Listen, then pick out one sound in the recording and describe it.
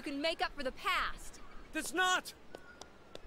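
A young woman speaks angrily and with emotion, close by.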